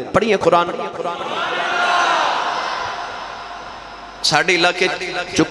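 A man speaks with fervour into a microphone, heard through a loudspeaker.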